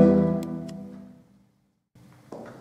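An organ plays a chord that fades away in a large echoing hall.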